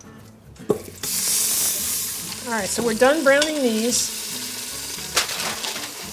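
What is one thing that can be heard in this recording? Meat sizzles in a hot pot.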